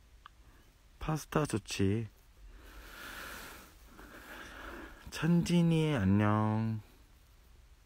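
A young man speaks close to a phone microphone in short bursts.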